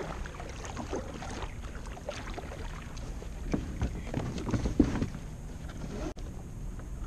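A paddle splashes and dips into calm water.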